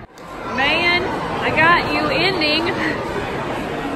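A young girl laughs and squeals close by.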